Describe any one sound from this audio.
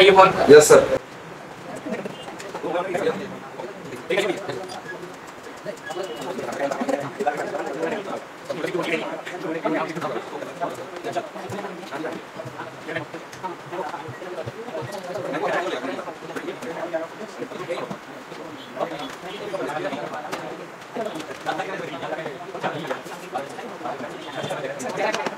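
A young man speaks calmly and steadily close to a microphone.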